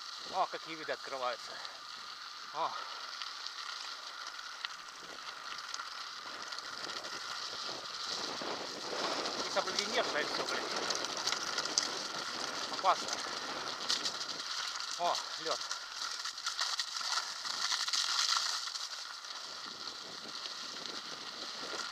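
Tyres roll over a wet gravel path.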